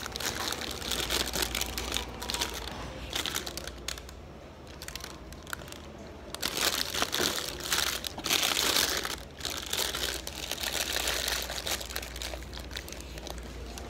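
Paper wrapping crinkles and rustles.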